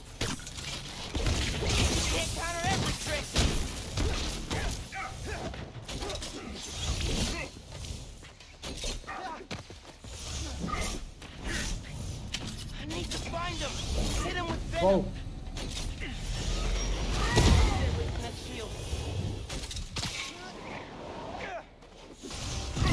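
Punches and kicks land with sharp thuds.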